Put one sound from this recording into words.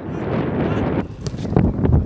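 A football is struck hard with a thump.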